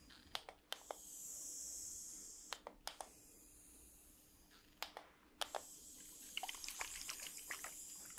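A spray bottle hisses close by.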